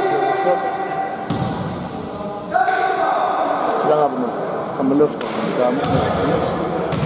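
Men call out and talk in a large echoing hall.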